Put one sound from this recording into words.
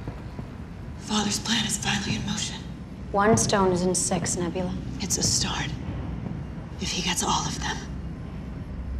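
A young woman speaks tensely and close by.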